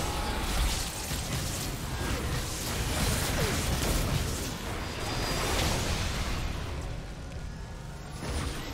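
Magical combat effects whoosh and burst repeatedly.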